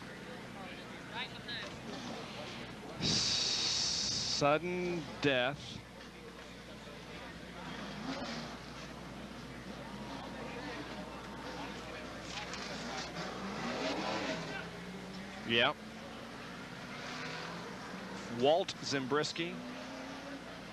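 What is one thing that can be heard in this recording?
Racing car engines roar past at high speed, their pitch rising and falling.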